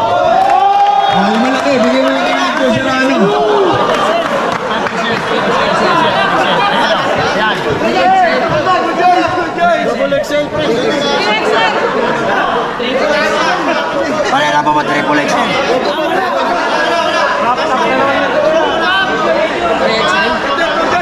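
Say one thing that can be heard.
A man speaks with animation into a microphone over a loudspeaker.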